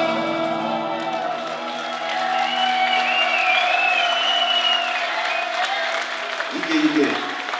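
A live band plays loudly in an echoing hall.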